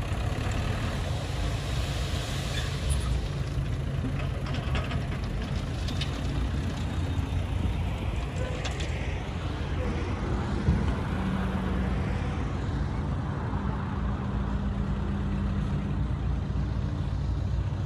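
A truck engine idles nearby with a low steady rumble.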